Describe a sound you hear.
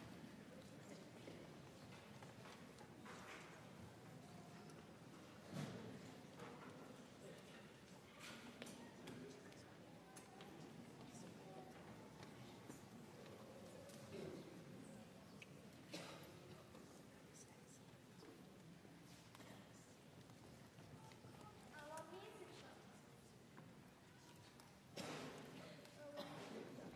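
A concert band plays softly in a large echoing hall.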